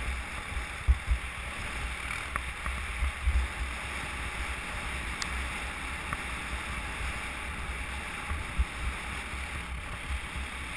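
Wind buffets loudly in gusts outdoors.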